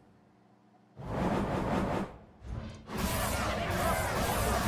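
Game effects whoosh and burst with a loud crackling blast.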